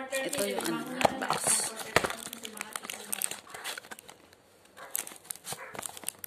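Cardboard packaging rustles and crinkles in hands.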